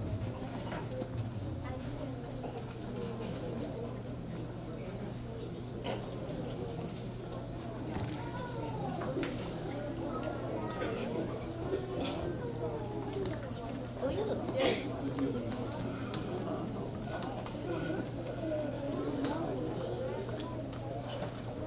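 A woman speaks through a microphone and loudspeakers in an echoing hall.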